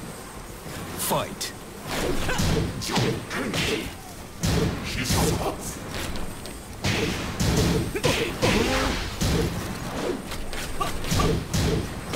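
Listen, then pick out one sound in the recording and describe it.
Punches and kicks land with sharp, heavy thuds in quick bursts.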